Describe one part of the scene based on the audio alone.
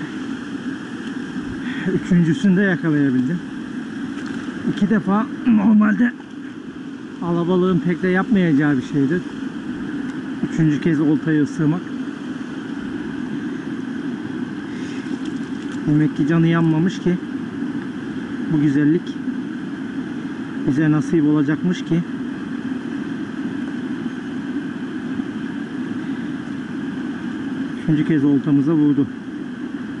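A river rushes and splashes steadily over stones.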